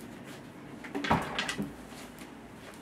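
A chair scrapes as a man stands up.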